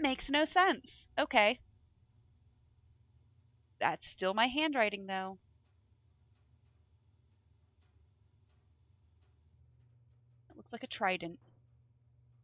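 A young woman talks casually into a headset microphone, in short bursts.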